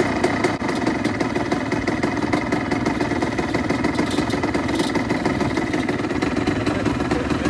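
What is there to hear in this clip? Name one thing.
Nearby all-terrain vehicle engines idle with a steady, rattling rumble.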